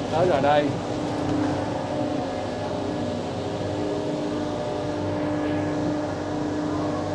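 A train rumbles and hums steadily as it rolls along.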